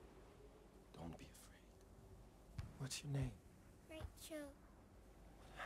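A young girl speaks quietly.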